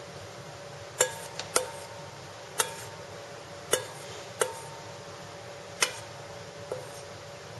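Spoonfuls of flour drop into a metal bowl with soft taps.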